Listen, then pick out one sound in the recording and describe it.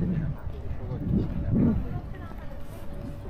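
A man speaks briefly nearby, outdoors.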